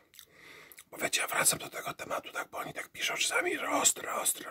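A young man talks with animation, close to the microphone.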